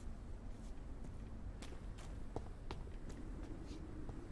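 Footsteps crunch slowly over gravel and stone.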